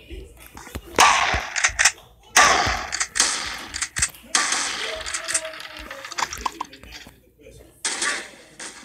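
Gunshots from a rifle fire in bursts.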